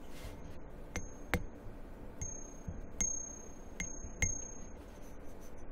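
Metal parts clink and ring lightly when handled.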